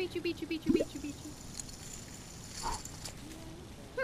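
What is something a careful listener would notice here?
Poker chips clatter onto a table.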